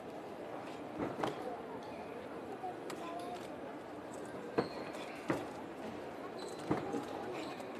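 A karate uniform snaps sharply with quick strikes.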